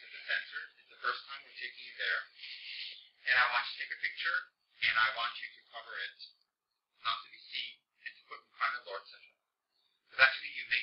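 A man speaks calmly through a microphone, in short phrases with pauses.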